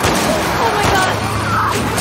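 A woman exclaims in alarm.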